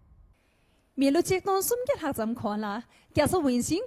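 A woman speaks with animation into a microphone, heard through a loudspeaker system.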